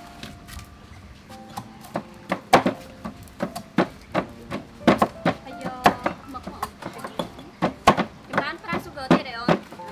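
A knife chops on a wooden cutting board.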